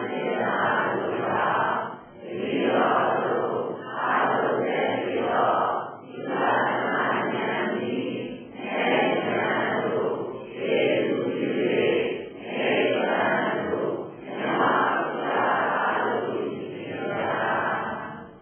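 An elderly man chants in steady, rhythmic phrases into a microphone.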